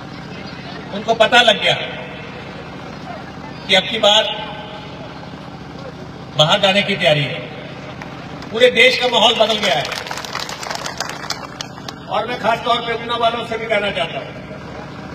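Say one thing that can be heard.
A man makes a forceful speech into a microphone, heard through a loudspeaker in short bursts with pauses.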